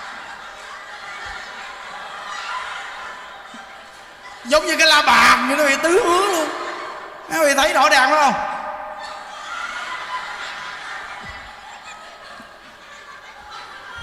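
A crowd of women laughs loudly.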